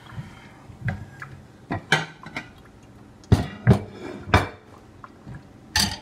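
A pan clatters as it is handled.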